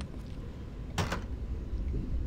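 A button clicks.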